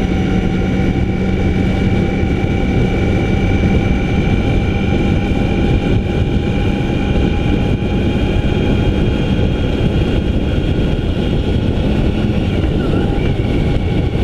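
A motorcycle engine drones steadily at speed.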